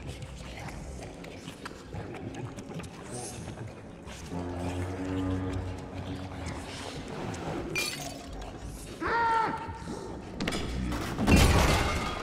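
Small footsteps patter on creaking wooden floorboards.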